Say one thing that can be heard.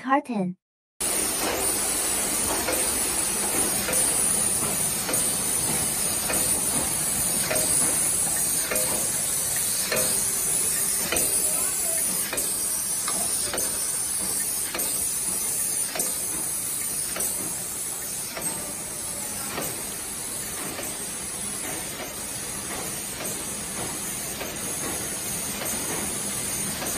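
A packing machine whirs and clacks steadily with rhythmic ticks.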